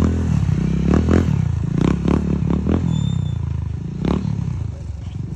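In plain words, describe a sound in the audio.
A motorcycle engine drones as it rides away on sand.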